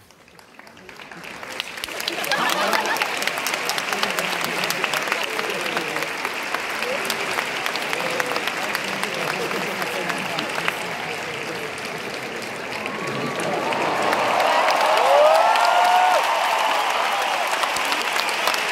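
A large crowd cheers loudly in a big echoing arena.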